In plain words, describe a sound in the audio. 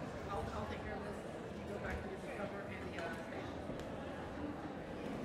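A crowd of men and women murmur and chat in a large echoing hall.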